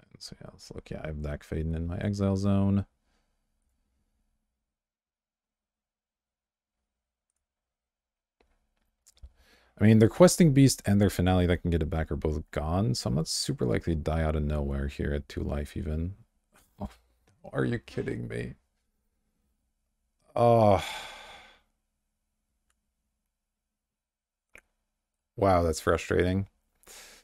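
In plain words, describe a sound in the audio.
A young man talks casually into a close microphone, in bursts with pauses.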